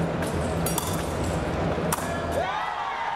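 Steel blades clash and click briefly.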